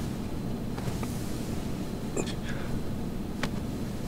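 Bedding rustles softly as a man sits up.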